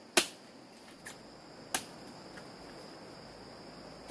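Palm leaves rustle as fruit is pulled from a bunch.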